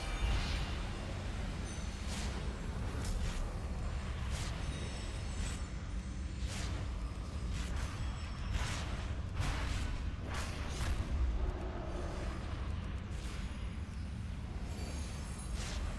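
Magic spells whoosh and burst in short blasts.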